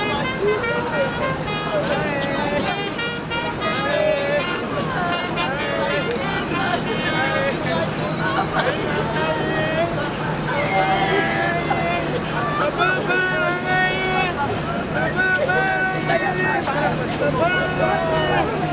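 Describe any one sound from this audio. A crowd murmurs and talks in the background.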